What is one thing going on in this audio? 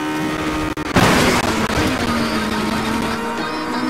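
A car crashes and scrapes hard against a wall.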